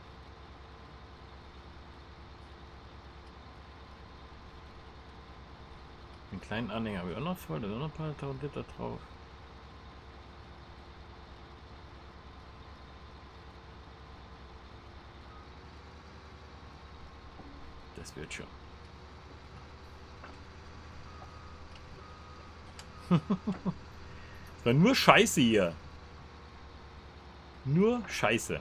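A combine harvester engine hums steadily.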